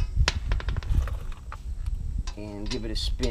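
A ratchet wrench clicks against a wheel's lug nut.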